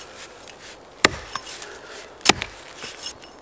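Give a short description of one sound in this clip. An axe strikes wood with sharp knocks.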